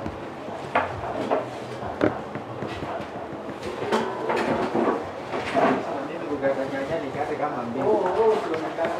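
A woman talks calmly on a phone nearby.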